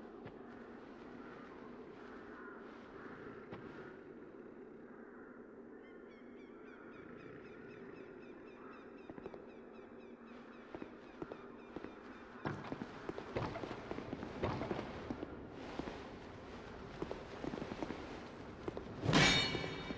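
Footsteps patter steadily on stone.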